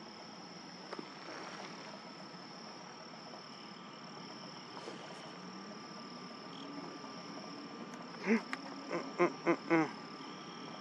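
A bird of prey gives a quick series of sharp, shrill whistling calls close by.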